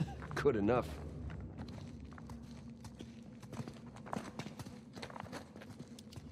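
Footsteps walk slowly on a stone floor.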